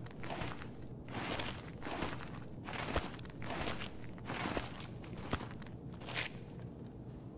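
Quick footsteps scuff on a hard floor.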